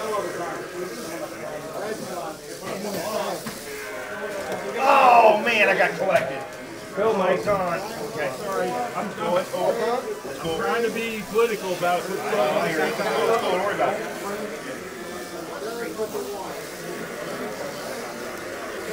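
Several men talk and call out with animation nearby.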